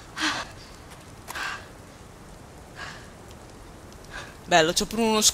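A young woman breathes heavily.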